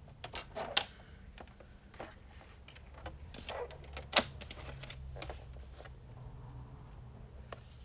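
Paper taps and clicks on a hard surface.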